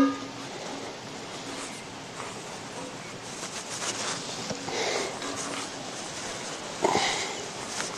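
A wooden handle knocks against a small metal pot.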